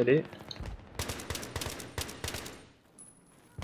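Rapid gunfire cracks in short bursts.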